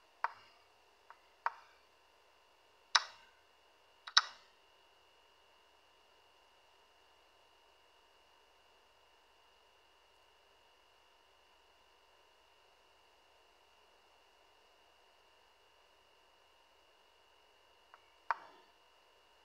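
Chess pieces click sharply as they are moved.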